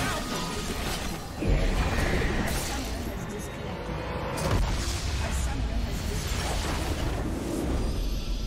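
Video game explosions and battle effects rumble loudly.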